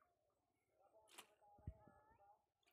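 Water splashes briefly at the edge of a fishing line.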